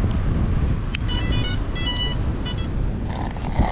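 A small drone beeps a quick series of high electronic tones as its battery is plugged in.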